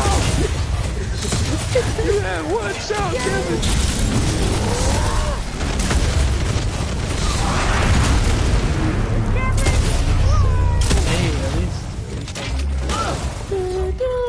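Energy weapons fire in rapid sharp blasts.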